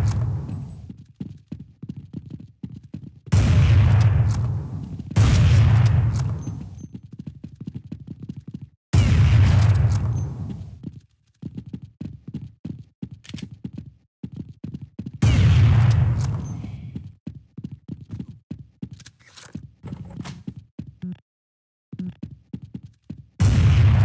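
Footsteps tap quickly on hard ground.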